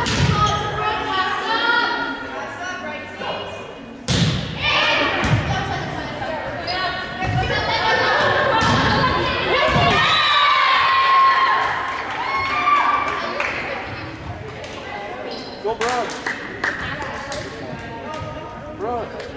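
Young women players shout and call out to each other.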